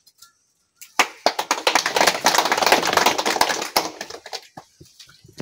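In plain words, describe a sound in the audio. A crowd claps and cheers outdoors.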